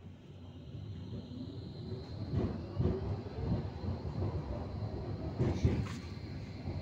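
A tram rumbles along its rails.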